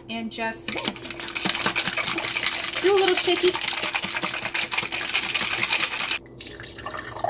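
Something rattles as a jar is shaken.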